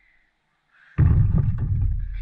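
A ball hits a hoop's rim and backboard.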